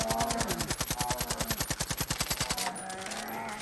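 A large animal growls nearby.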